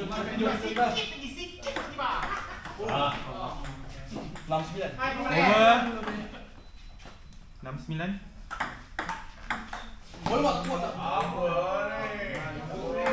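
A ping pong ball clicks sharply on a table and paddles.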